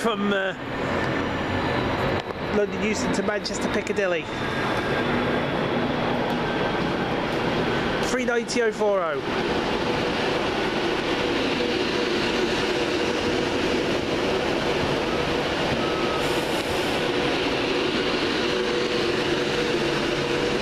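An electric express train approaches and passes at speed, roaring along the rails.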